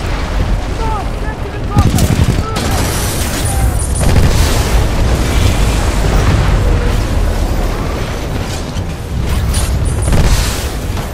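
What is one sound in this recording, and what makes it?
Heavy gunfire rattles and booms.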